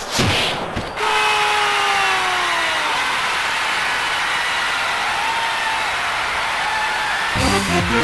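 A stadium crowd cheers loudly after a goal.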